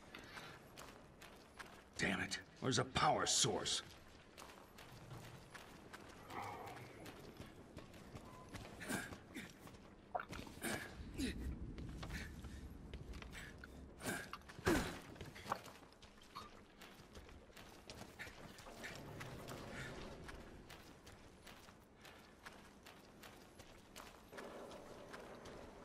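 Boots thud in steady footsteps on hard ground.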